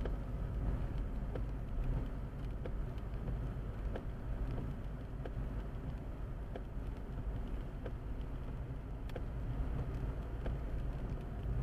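Raindrops tap on a car's windscreen.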